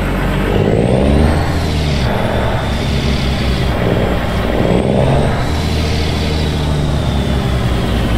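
A truck's engine revs up and down as it moves.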